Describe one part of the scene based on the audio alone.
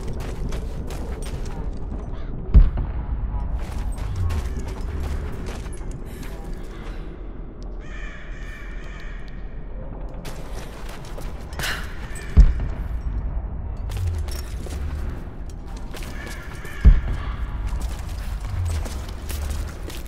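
Footsteps crunch on loose gravel and stones.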